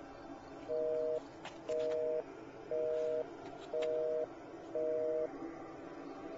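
A phone ringing tone beeps in short bursts through a phone earpiece.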